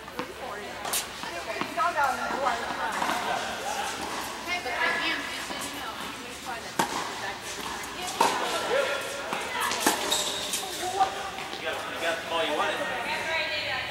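Women talk and call out across a large echoing hall.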